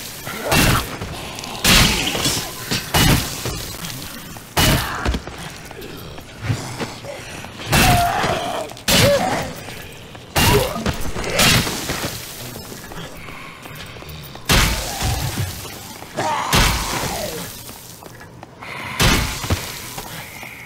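Heavy blows thud and smack into bodies again and again.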